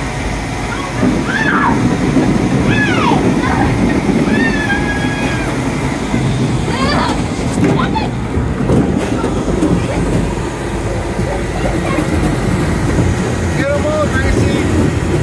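A strong air blower roars inside a game machine.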